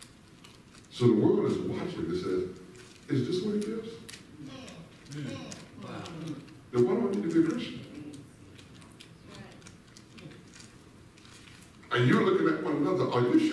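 A man preaches loudly through a microphone in a large echoing hall, in bursts with pauses.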